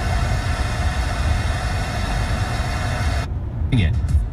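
A car radio hisses with static.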